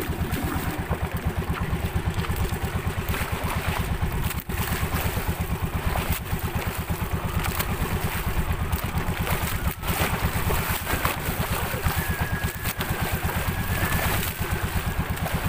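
A boat engine chugs steadily and loudly.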